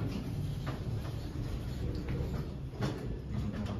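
An elevator hums low and steadily.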